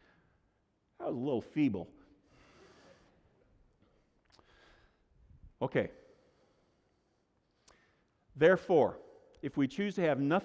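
A middle-aged man speaks with animation through a microphone in a room with a slight echo.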